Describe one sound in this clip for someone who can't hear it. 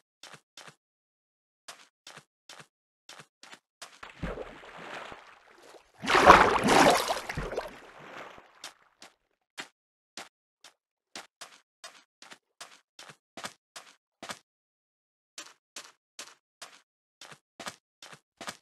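Footsteps crunch steadily on sand.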